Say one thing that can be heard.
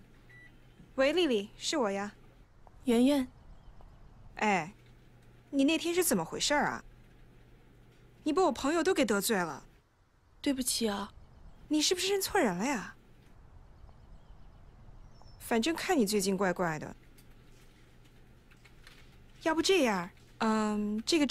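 A young woman talks calmly into a phone, close by.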